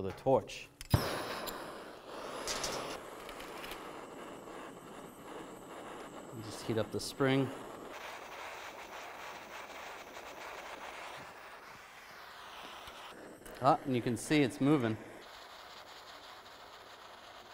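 A gas torch hisses steadily.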